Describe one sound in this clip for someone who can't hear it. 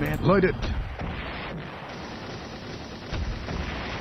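Tank guns fire in short bursts.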